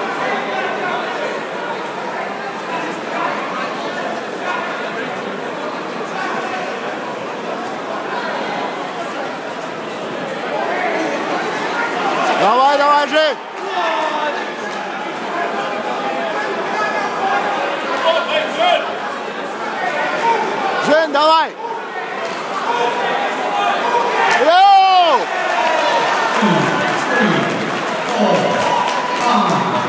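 A crowd murmurs and shouts in a large echoing hall.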